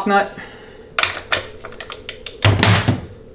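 A ratchet wrench clicks in quick bursts.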